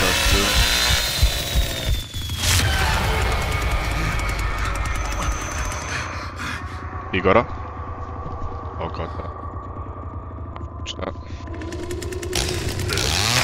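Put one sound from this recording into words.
A chainsaw engine idles with a low rumble.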